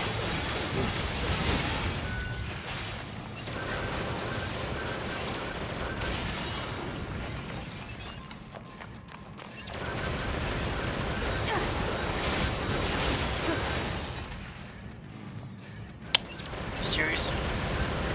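Blades swish and clash in quick strikes.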